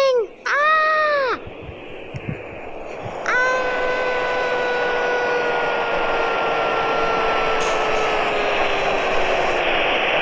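A tornado roars with a steady rushing wind.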